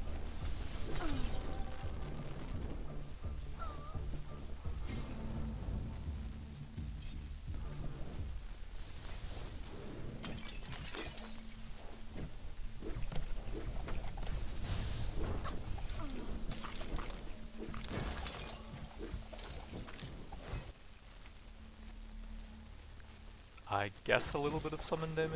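Magic spells burst and crackle in quick bursts.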